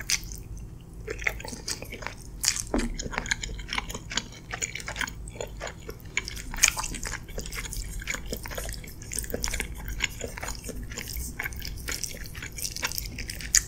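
Wooden utensils scrape and tap against a glass dish.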